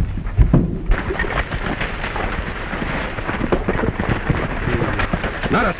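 Horses' hooves trample on dirt.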